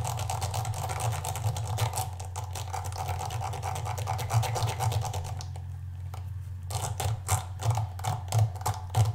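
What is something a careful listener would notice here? A brush scrubs against a soft rubber pad with quick, scratchy strokes.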